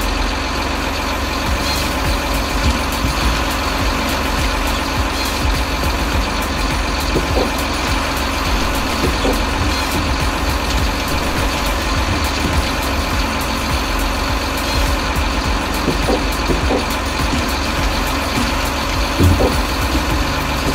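A diesel engine rumbles steadily.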